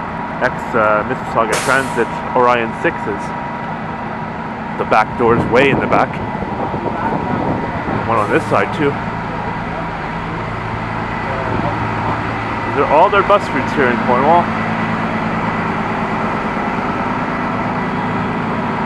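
A bus engine idles with a steady low rumble nearby.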